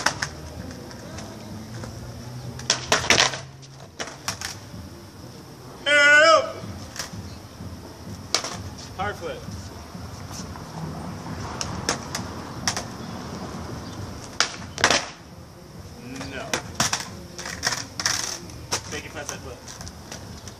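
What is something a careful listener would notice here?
A skateboard clatters and slaps against the ground.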